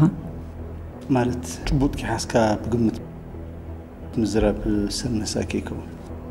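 A man speaks weakly and slowly, close by.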